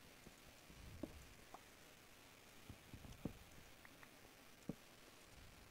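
Wooden blocks break with sharp, clacking knocks.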